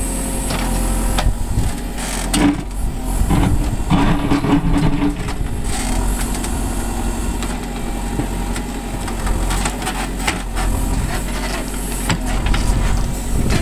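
A backhoe bucket scrapes and digs into packed dirt.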